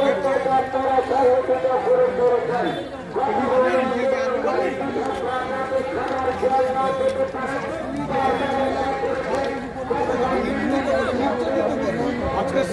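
A crowd of men chants slogans outdoors.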